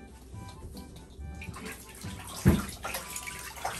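Water pours from a hose into a bathtub.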